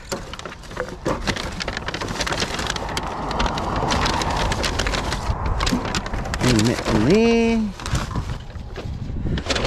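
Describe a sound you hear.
A paper bag rustles.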